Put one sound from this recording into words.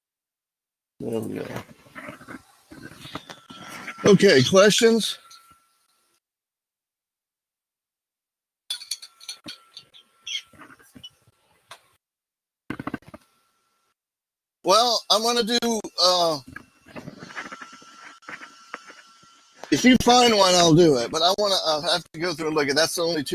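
An older man explains calmly through a computer microphone.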